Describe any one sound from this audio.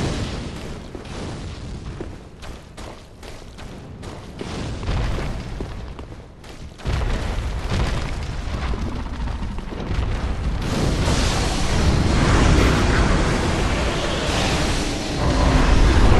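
Heavy armoured footsteps clank on a stone floor.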